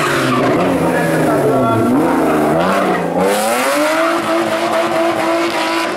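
A rally car engine revs hard, rising and falling through the gears.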